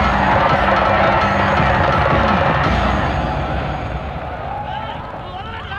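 A large crowd cheers and roars loudly, then fades.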